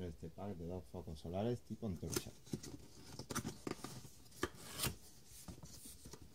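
Cardboard rustles and scrapes as a box is handled and opened close by.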